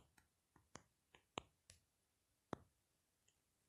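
Phone keyboard taps click softly, one after another.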